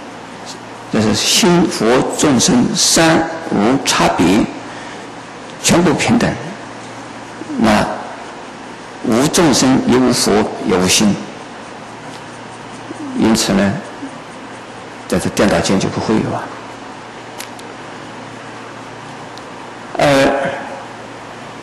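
An elderly man speaks calmly and slowly into a microphone, in short phrases with pauses.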